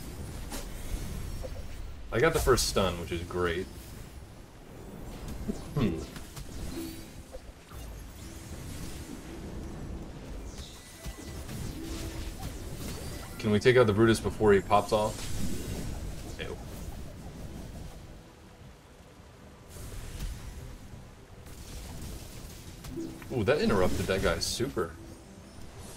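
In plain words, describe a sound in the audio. Game battle effects whoosh and clash.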